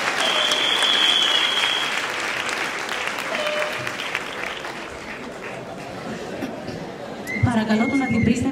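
An audience applauds and cheers loudly in a large hall, the clapping slowly fading.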